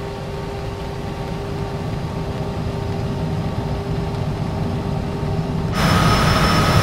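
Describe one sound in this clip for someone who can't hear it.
Jet engines hum, muffled, from inside a cockpit.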